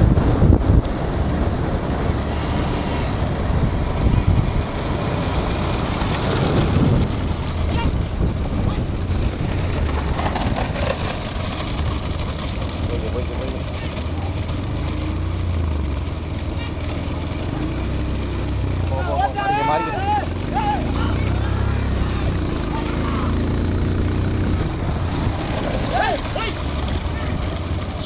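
Wind rushes and rumbles past a moving vehicle.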